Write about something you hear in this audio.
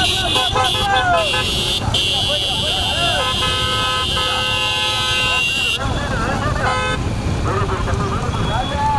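Men on a racing bullock cart shout with excitement.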